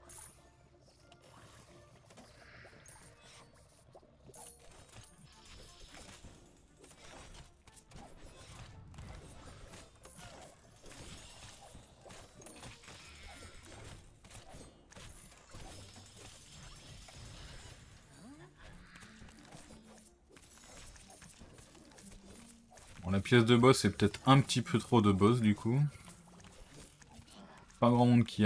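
Soft game sound effects blip and clink.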